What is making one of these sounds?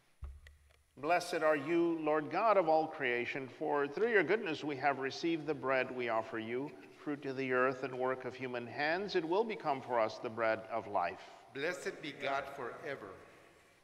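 A man speaks or chants steadily through a microphone in a large echoing hall.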